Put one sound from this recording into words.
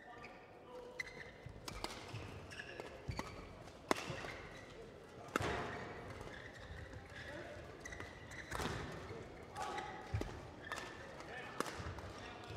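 A shuttlecock is struck sharply back and forth with rackets.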